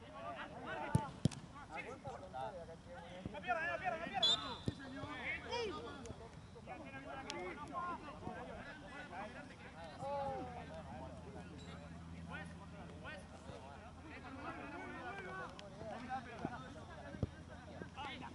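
A football is kicked with sharp thumps.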